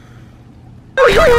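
A dog yawns with a squeaky whine.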